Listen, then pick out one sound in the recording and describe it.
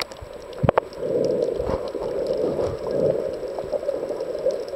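Water rushes and rumbles, muffled underwater.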